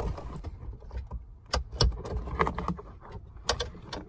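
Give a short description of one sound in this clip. A plastic plug clicks as it is pulled from a socket.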